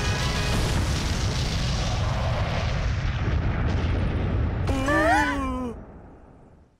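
A deep, roaring rumble of an explosion billows on.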